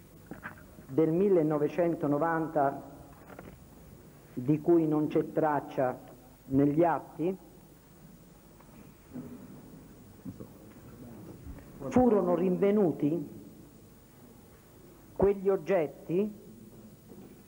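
An older man reads out into a microphone, in measured bursts.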